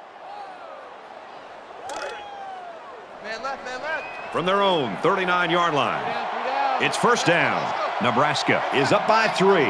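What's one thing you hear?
A large crowd cheers in a stadium.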